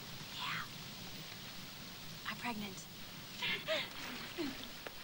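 A middle-aged woman laughs with delight close by.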